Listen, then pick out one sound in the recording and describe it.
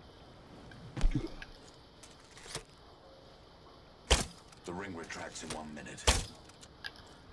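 A bow string snaps sharply as arrows are fired.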